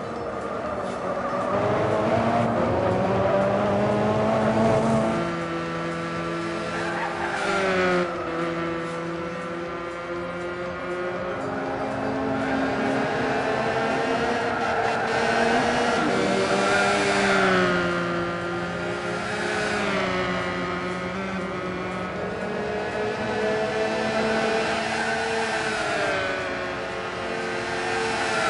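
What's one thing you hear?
A racing car engine roars loudly, rising and falling in pitch as it shifts gears.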